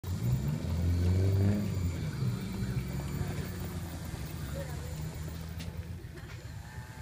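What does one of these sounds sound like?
A model airplane's electric motor whirs as it taxis.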